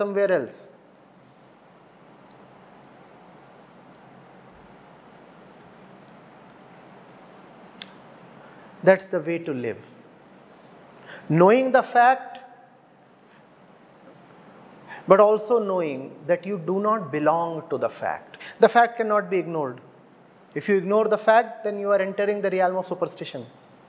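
A middle-aged man speaks calmly and thoughtfully into a close microphone, with long pauses.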